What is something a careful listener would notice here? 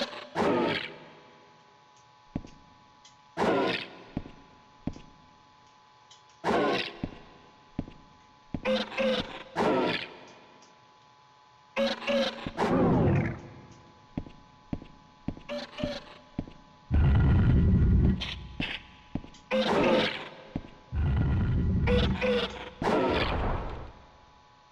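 A creature lets out repeated loud screeching cries.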